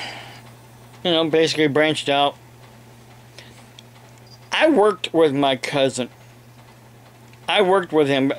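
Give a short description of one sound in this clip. An older man speaks calmly, close to a microphone, in short bursts.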